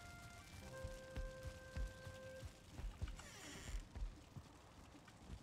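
Heavy footsteps thud on a wooden floor at a steady walking pace.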